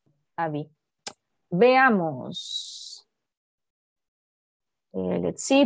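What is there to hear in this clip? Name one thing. A young woman speaks animatedly through an online call.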